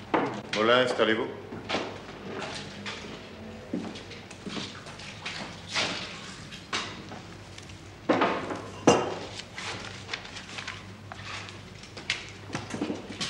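A man speaks in a low voice.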